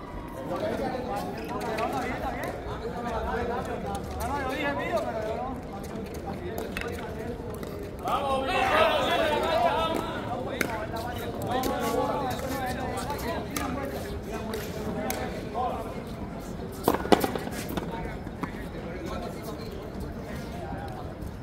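Several men talk and call out in a large echoing court.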